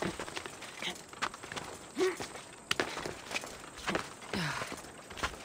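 Hands and boots scrape and thud against rock as a climber clambers up a cliff.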